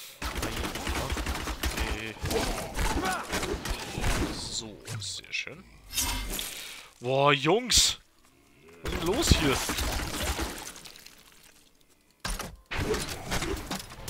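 Fiery bolts whoosh and burst in quick bursts.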